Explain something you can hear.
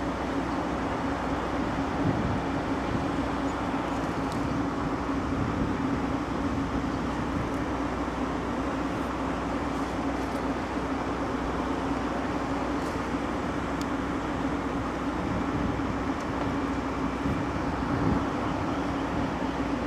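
A passenger train rumbles slowly along the tracks with a steady low hum.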